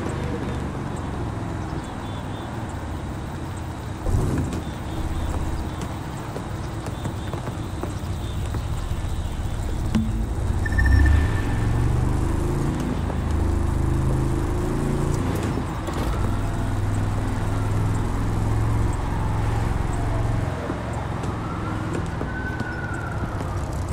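A sports car engine roars and revs through the gears.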